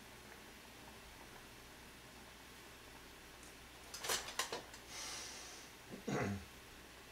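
Soup simmers softly in a pot.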